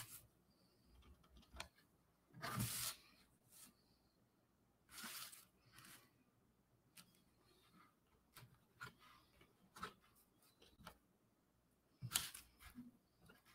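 A marker tip scratches and squeaks on cardboard in short strokes.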